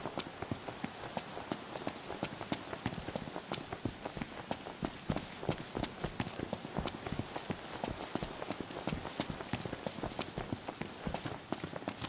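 Quick running footsteps crunch on a gravel path.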